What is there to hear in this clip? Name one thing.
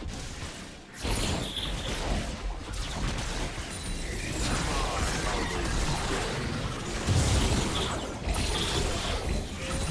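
Magic spells crackle and burst as game characters fight.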